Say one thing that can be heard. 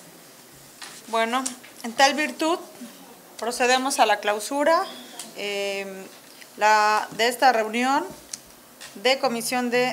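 A middle-aged woman speaks clearly into a microphone.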